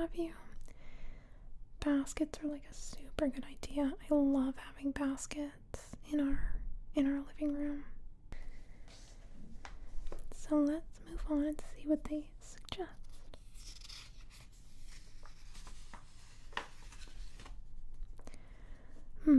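Fingernails tap and scratch lightly on glossy paper.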